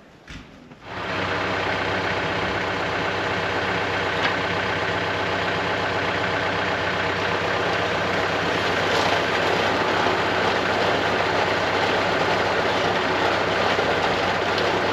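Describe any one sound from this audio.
A tractor engine runs with a steady loud rumble.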